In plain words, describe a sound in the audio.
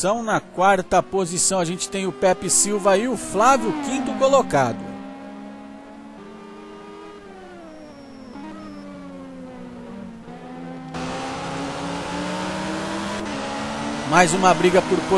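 Racing car engines roar and rev up and down as cars speed past.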